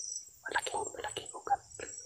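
A hand brushes against rough tree bark.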